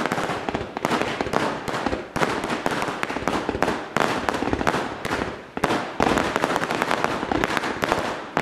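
Fireworks launch with sharp booms.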